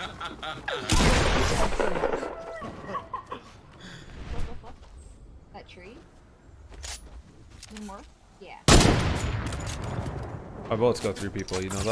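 Gunshots crack in loud, rapid bursts.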